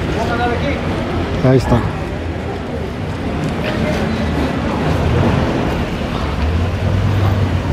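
People chatter in a crowd outdoors.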